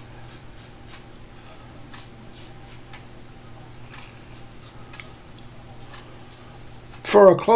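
A razor scrapes softly against stubble.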